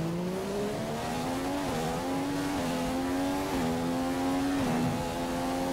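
A racing car engine screams as it accelerates, rising in pitch and dipping briefly at each gear change.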